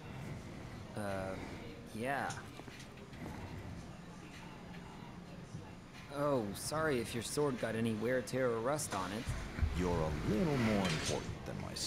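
A young man answers casually.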